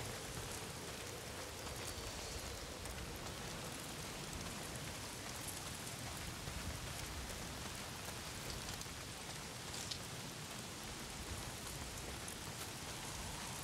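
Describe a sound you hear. Footsteps crunch on gravel and dirt.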